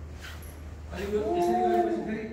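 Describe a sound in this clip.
A man chants a long, steady note.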